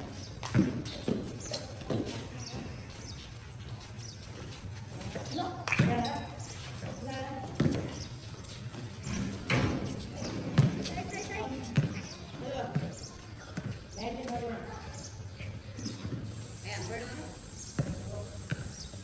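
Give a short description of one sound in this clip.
A ball bounces on hard pavement outdoors.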